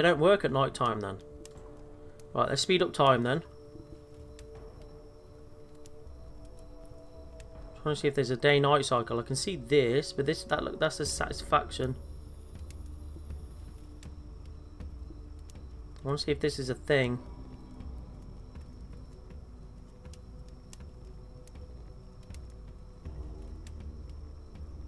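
A fire crackles and burns steadily.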